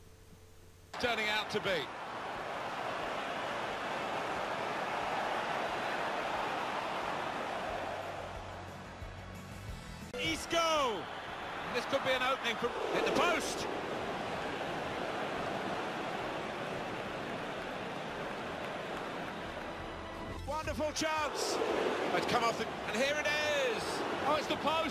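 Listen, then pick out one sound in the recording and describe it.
A stadium crowd roars.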